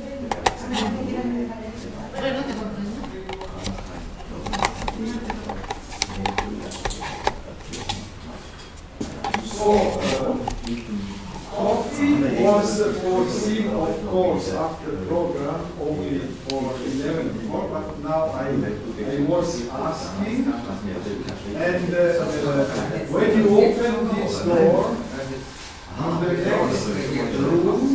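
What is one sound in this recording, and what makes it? Several adults talk and chat casually nearby.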